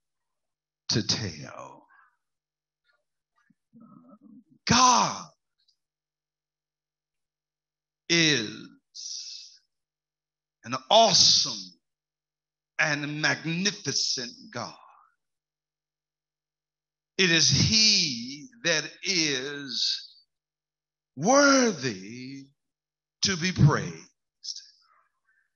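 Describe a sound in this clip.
A man preaches with animation into a microphone, in short bursts with pauses.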